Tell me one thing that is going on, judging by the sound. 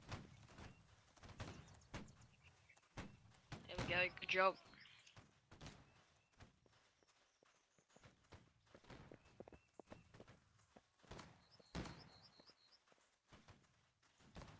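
Footsteps crunch on sand as a line of soldiers marches.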